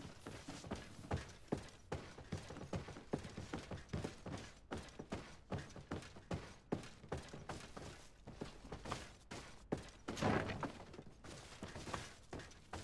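Armour rattles and clinks with each step.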